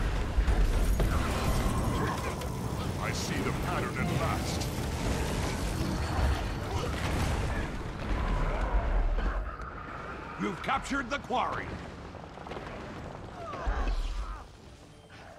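Fiery spell blasts crackle and burst.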